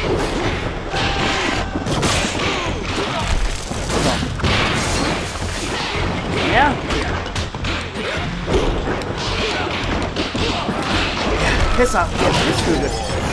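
Punches and kicks land with sharp hits in a fast fight.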